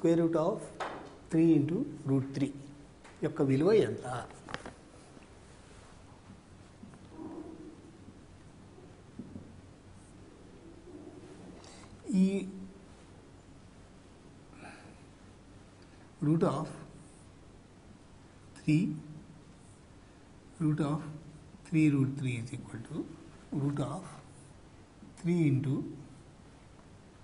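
An elderly man speaks calmly in short phrases, close to a microphone, with long pauses.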